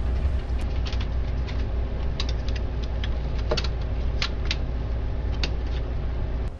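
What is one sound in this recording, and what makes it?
Plastic parts click and tap as a hand works inside a printer.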